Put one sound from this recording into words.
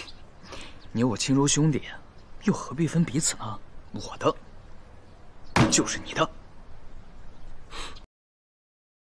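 A young man speaks softly and warmly up close.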